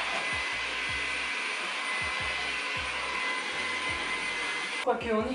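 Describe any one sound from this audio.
A cordless vacuum cleaner whirs steadily close by.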